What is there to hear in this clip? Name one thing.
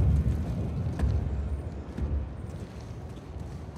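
Footsteps run over hard ground.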